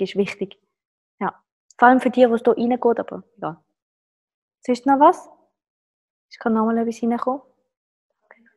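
A woman speaks to the listener, close to a microphone, in short animated bursts.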